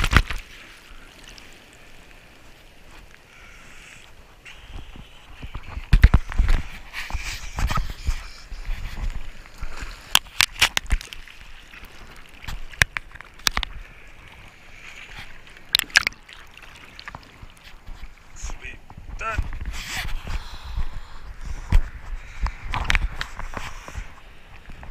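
Water splashes and slaps against a surfboard.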